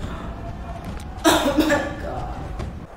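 A young woman gasps loudly in shock close by.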